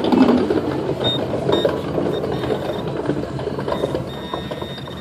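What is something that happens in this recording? A handheld metal detector beeps in short, high tones.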